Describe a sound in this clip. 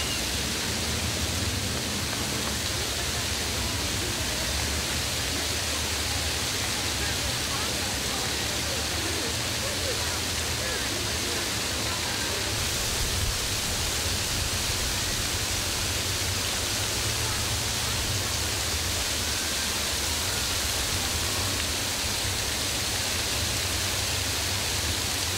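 Fountain jets spray and splash steadily onto stone basins.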